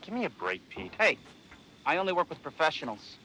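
Another man answers with animation.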